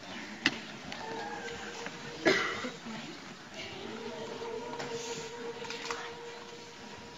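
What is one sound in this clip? A children's choir sings softly.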